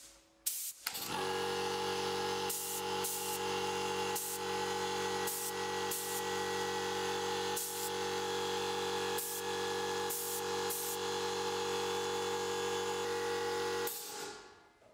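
A spray gun hisses in steady bursts.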